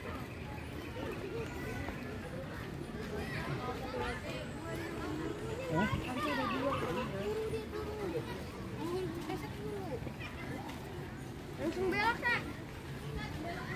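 A crowd of men, women and children chatters outdoors nearby.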